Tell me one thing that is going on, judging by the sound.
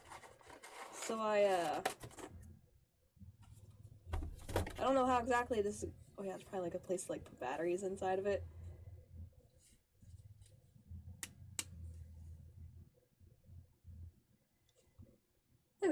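Paper rustles as cards are handled.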